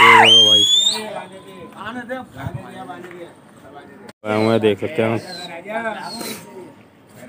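Young men talk and call out to each other outdoors.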